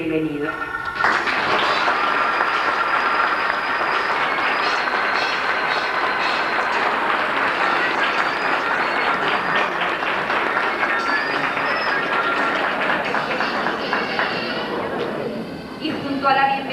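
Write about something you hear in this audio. A crowd applauds loudly in an echoing hall.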